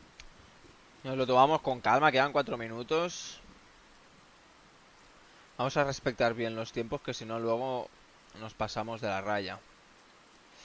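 A young man talks casually, close to a microphone.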